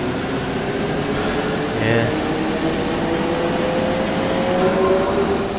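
A bus engine hums steadily and slowly rises in pitch as the bus speeds up.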